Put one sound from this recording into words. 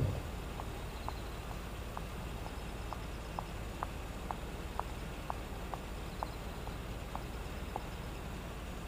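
A woman's footsteps click on pavement.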